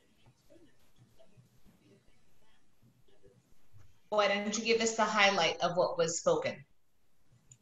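An elderly woman speaks calmly through an online call.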